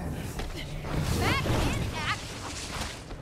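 Electricity crackles sharply.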